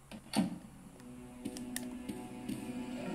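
Game music plays softly through a small phone speaker.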